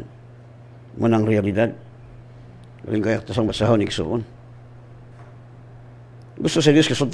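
An older man speaks calmly into a close microphone, in short bursts with pauses.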